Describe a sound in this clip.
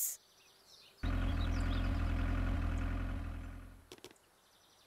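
A car engine rumbles as a car drives up a hill.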